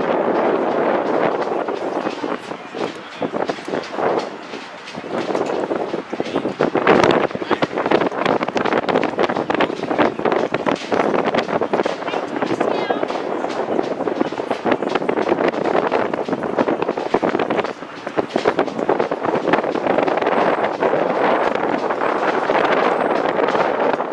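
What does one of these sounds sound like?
A crowd of young players chatter and call out across an open field outdoors.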